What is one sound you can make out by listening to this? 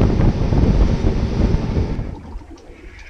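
Water rushes and splashes in a boat's wake.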